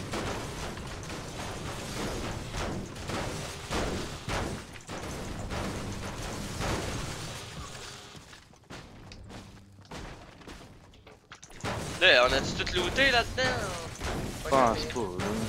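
A pickaxe strikes metal again and again with sharp clangs.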